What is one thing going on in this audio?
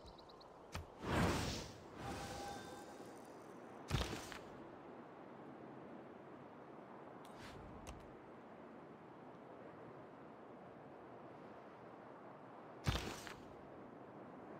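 A short game interface whoosh sounds as the map view switches.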